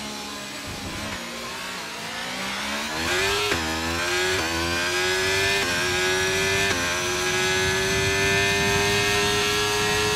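A racing car engine rises in pitch through quick gear changes as the car speeds up.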